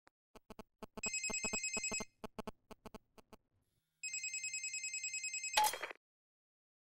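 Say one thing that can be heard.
A phone ringtone rings in short bursts.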